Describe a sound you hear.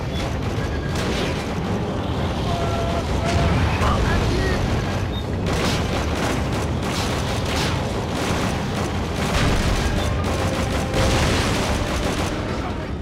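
A heavy gun fires repeatedly in loud booming blasts.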